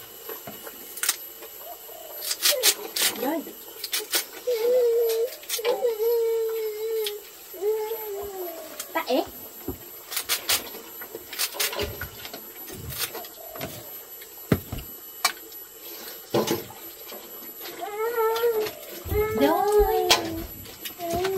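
A utensil clinks against a metal pot.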